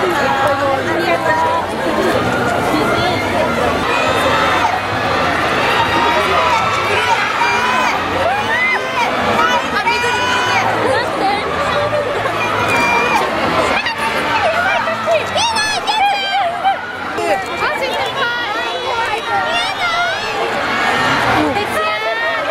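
A large outdoor crowd chatters and calls out excitedly.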